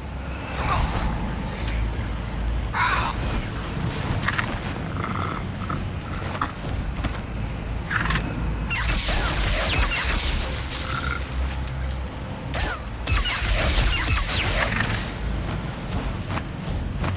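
Large wings flap with heavy whooshes.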